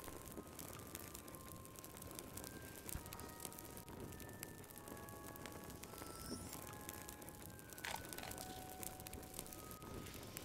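A fire crackles and pops in a fireplace.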